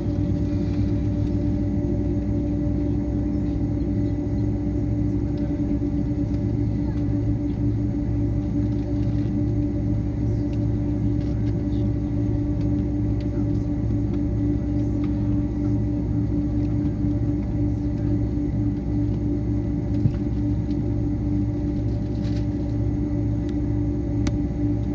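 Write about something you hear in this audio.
A jet engine hums steadily and loudly inside an aircraft cabin.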